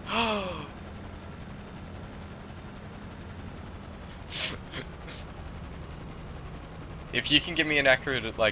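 A tiltrotor aircraft's engines drone steadily with whirring rotors.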